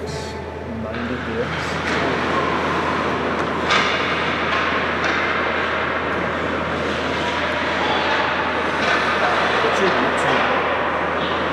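Ice skates scrape and swish across the ice.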